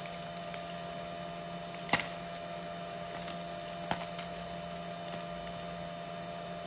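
Oil sizzles and crackles in a frying pan.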